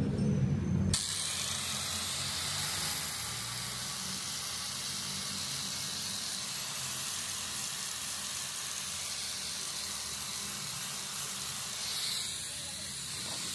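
An electric polisher whirs steadily against plastic.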